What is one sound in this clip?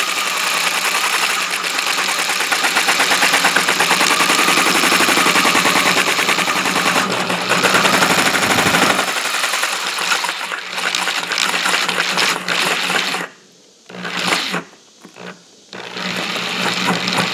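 A drill spins a circle cutter that scrapes through plastic with a loud rasping whine.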